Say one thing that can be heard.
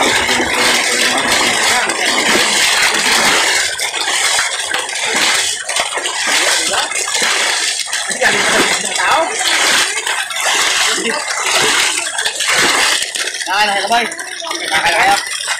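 Fish flap and splash in shallow water.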